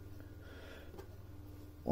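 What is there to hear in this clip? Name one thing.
Fingers rustle and press into loose, damp soil.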